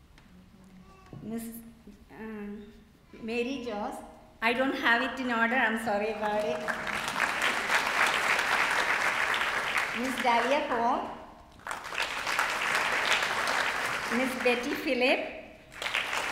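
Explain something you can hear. A woman speaks through a loudspeaker in a large echoing hall.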